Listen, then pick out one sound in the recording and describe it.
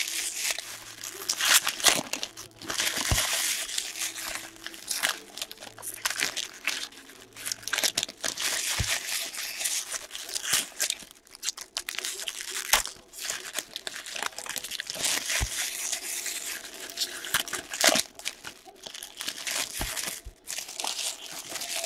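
Trading cards shuffle and slap onto a stack.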